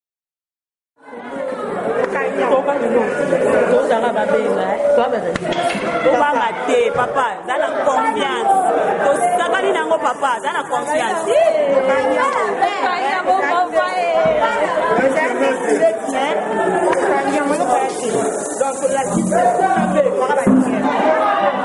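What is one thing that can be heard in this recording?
Several young women sing and chant loudly and excitedly close by.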